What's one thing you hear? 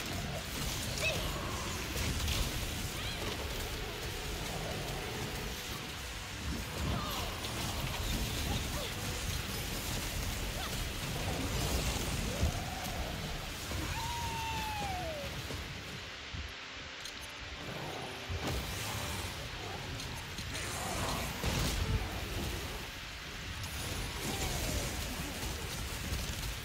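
Magical blasts and whooshes burst in a fast-paced battle.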